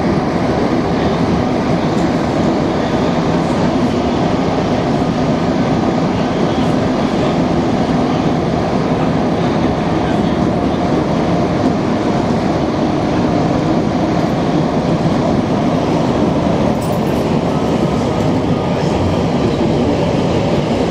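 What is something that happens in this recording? A subway train rumbles loudly through a tunnel.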